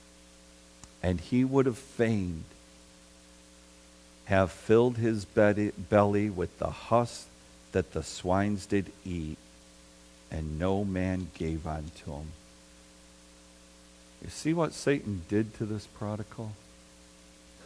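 A middle-aged man speaks calmly through a microphone, pausing between phrases.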